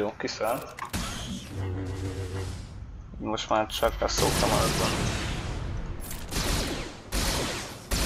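Blasters fire in quick bursts.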